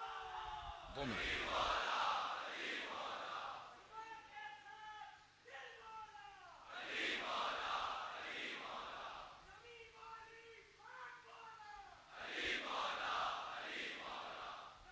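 A large crowd of men shouts back in unison in repeated bursts.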